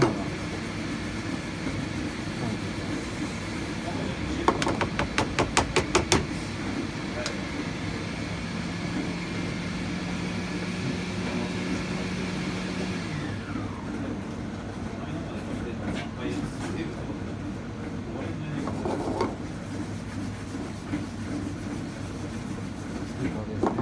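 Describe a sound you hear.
A spatula scrapes and stirs through dry grains in a metal pan.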